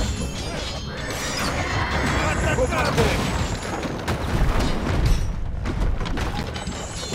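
Swords clash.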